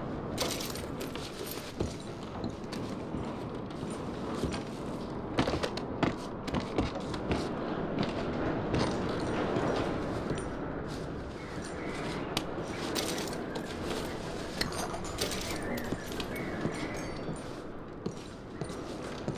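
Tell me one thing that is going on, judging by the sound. Boots thud on creaking wooden floorboards.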